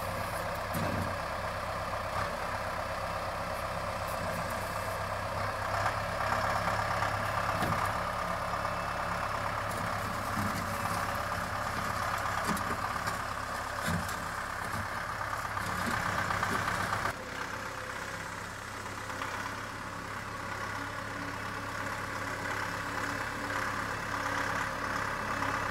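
A tractor engine rumbles steadily close by.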